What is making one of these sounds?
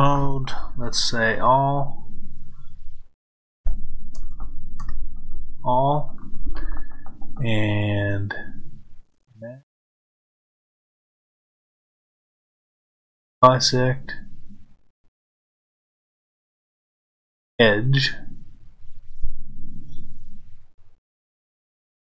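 A middle-aged man talks calmly into a close microphone, in bursts with long pauses.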